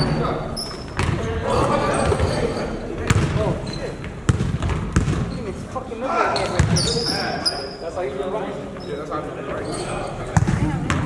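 Men call out and talk loudly while playing.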